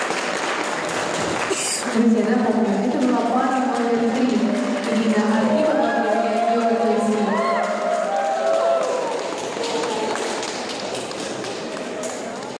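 Crowd chatter murmurs in a large echoing hall.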